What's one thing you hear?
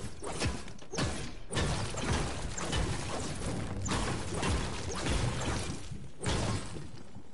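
A pickaxe strikes a hard surface again and again.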